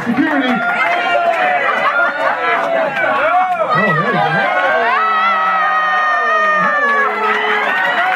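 Several people chatter and cheer in a room.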